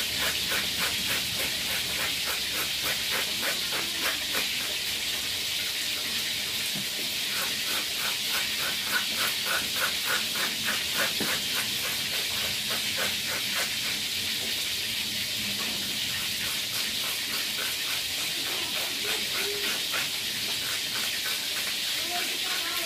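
A knife scrapes and slices quickly through firm fruit.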